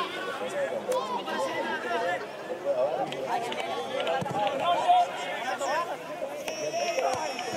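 Young men shout and call to each other across an open pitch outdoors.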